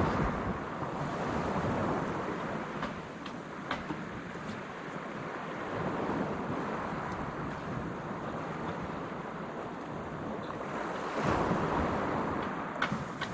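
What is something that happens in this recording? Waves wash onto a pebble shore nearby.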